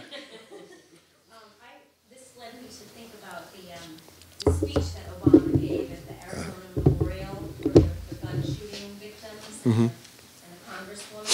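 A man speaks calmly through a microphone in a room with light echo.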